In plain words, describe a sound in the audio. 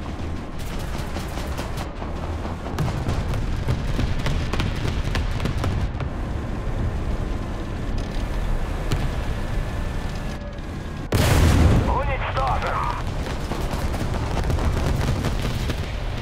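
A tank engine rumbles and its tracks clatter steadily.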